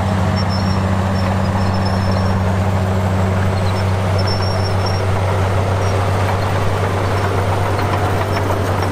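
A bulldozer's diesel engine rumbles steadily nearby.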